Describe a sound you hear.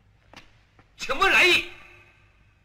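A man speaks loudly and sharply, close by.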